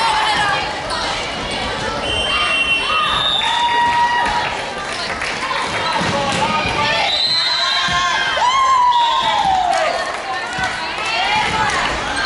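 Young women shout and cheer in the echoing hall.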